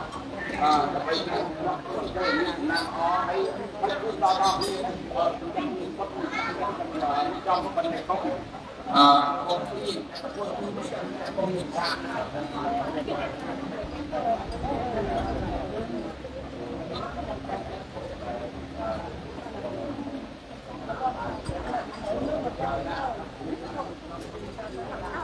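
Several young women sing together close by.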